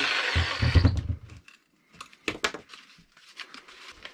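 A wooden board knocks and clatters as it is handled.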